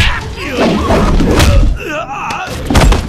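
A man crashes onto a sofa.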